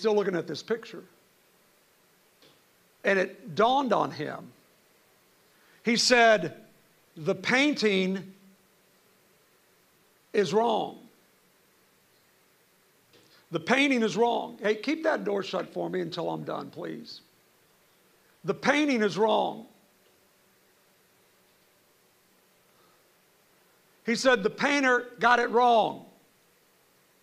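A middle-aged man speaks into a microphone in short bursts with pauses, heard through a loudspeaker in a large hall.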